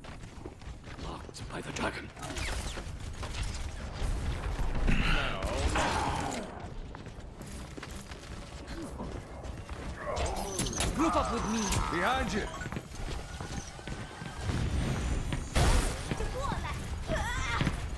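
Gunfire from a game weapon crackles in bursts.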